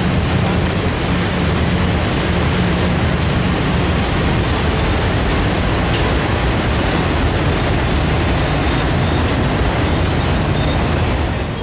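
A freight train rumbles past close by, its wheels clattering steadily on the rails.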